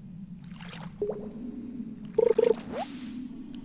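A fishing float plops into water.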